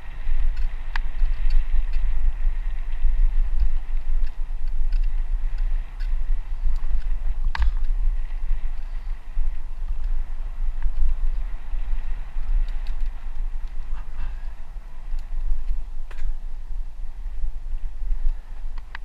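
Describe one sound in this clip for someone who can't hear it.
A bicycle rattles over bumps with sharp knocks.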